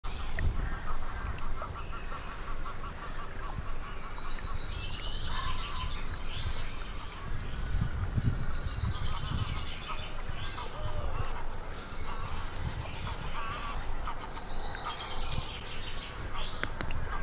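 Water laps gently against a stony shore.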